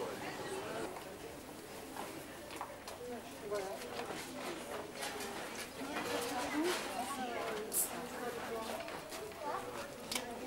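Footsteps shuffle on cobblestones.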